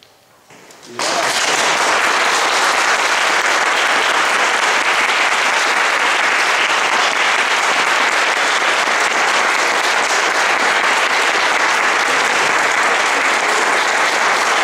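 An audience applauds loudly and steadily in an echoing room.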